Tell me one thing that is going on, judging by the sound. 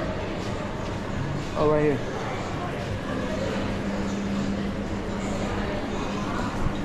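A low murmur of distant voices echoes through a large indoor hall.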